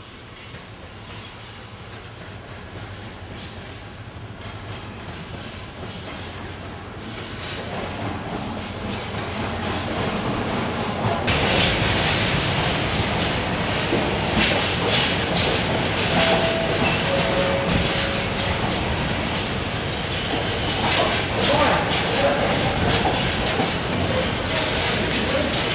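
A freight train rumbles past, its wagons clattering and squealing on the rails.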